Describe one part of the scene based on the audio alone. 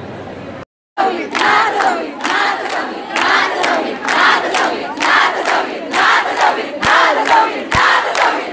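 A large crowd of women cheers and shouts loudly.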